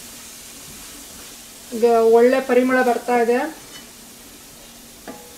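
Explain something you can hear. A spatula stirs soft cooked tomatoes in a stainless steel pan.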